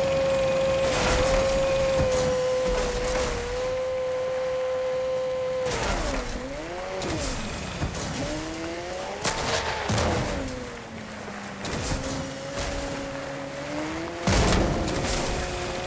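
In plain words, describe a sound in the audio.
A car thuds and bangs over rough ground.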